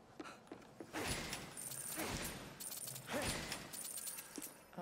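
A burst of shattering crashes loudly.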